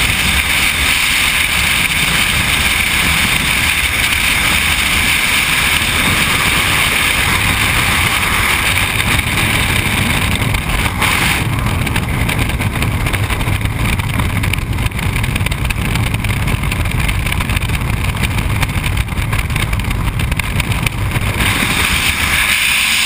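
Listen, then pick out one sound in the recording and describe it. Strong wind roars steadily past during a freefall.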